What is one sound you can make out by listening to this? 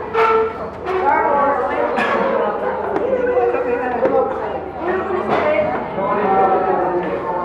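Teenage boys and girls talk and laugh with animation nearby.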